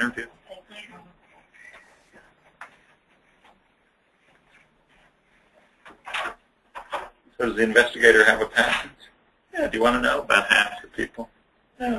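A man speaks with pauses, heard through an online call.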